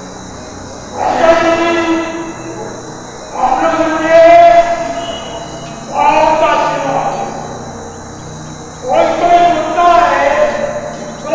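An elderly man speaks slowly and loudly into a microphone, heard through loudspeakers, in phrases with long pauses.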